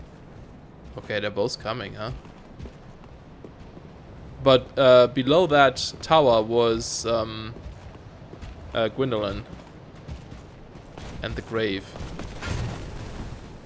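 Armoured footsteps thud on stone.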